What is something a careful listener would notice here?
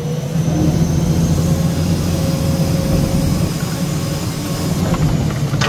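A hydraulic crane whines as it swings a log.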